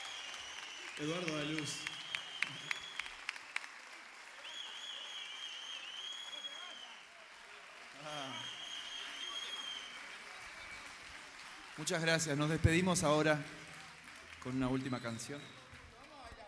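A man speaks into a microphone through loudspeakers in a large hall.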